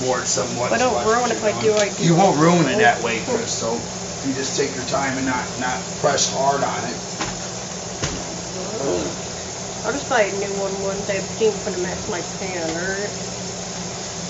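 A woman talks casually, close by.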